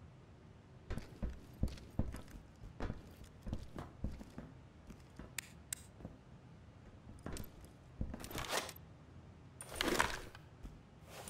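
Footsteps thud steadily on a hard floor as several people walk.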